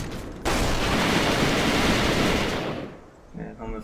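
A heavy truck engine rumbles nearby.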